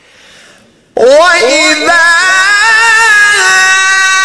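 A man's voice rises to a loud, high, sustained chant through a microphone.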